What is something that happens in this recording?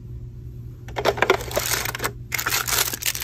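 A small plastic drawer clicks and rattles.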